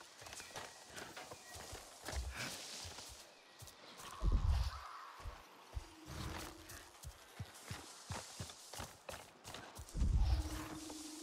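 Footsteps crunch through grass and brush.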